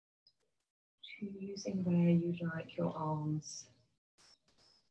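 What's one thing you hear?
A woman speaks calmly into a microphone, as if on an online call.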